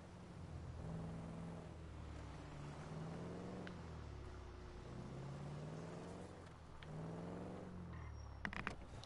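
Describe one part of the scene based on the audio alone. A car engine revs and changes pitch as the car drives.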